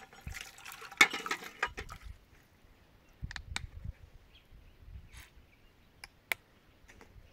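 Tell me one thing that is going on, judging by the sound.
Metal utensils clink against a pot.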